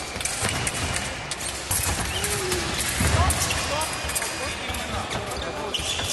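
Fencers' shoes squeak and stamp on the floor.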